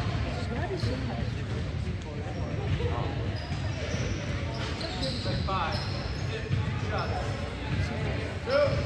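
A crowd of spectators murmurs and calls out in a large echoing gym.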